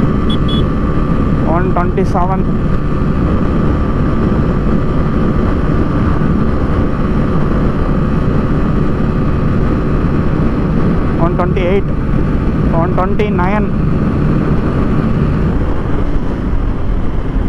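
A motorcycle engine hums steadily at high speed.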